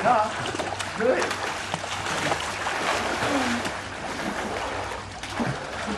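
Water splashes as people swim nearby.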